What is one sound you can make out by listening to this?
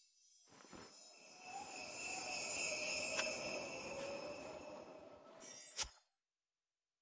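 A snow globe tinkles with a soft, shimmering chime.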